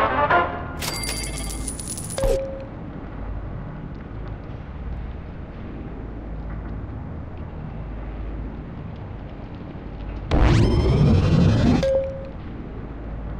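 A game plays short electronic whooshing chimes as menus open.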